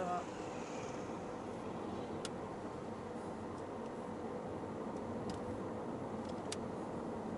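A car's engine hums steadily from inside the car.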